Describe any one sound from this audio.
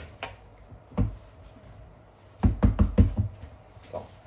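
A glass jar is set down on a board with a soft clunk.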